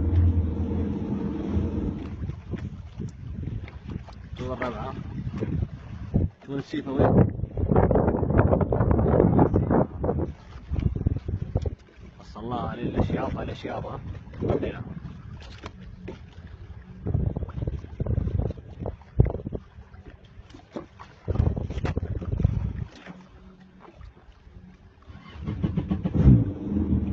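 Water laps and splashes around a swimming camel.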